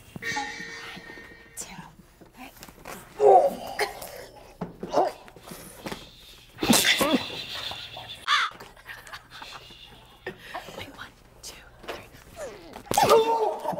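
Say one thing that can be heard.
A young man groans and strains in pain.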